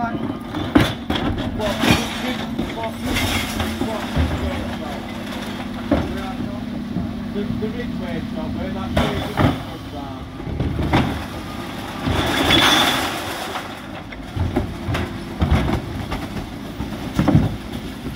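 Plastic wheelie bins bang and thud against the truck.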